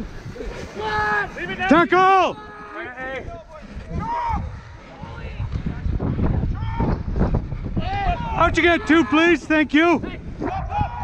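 Young men shout loudly to each other outdoors.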